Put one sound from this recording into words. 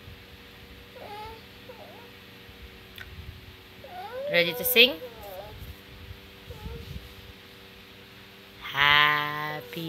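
A young boy speaks and whines briefly close by.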